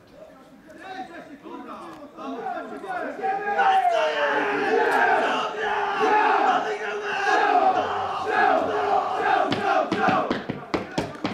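A group of young men shout together in a close huddle outdoors.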